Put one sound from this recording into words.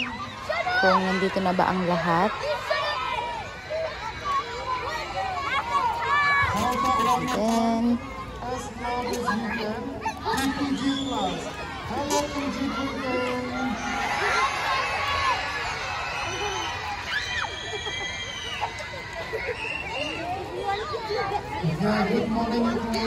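A large crowd of children chatters and calls out outdoors.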